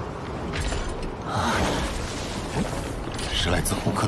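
A young man speaks in a low voice.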